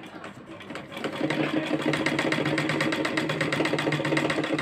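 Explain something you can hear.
A sewing machine runs steadily with a fast whirring rattle.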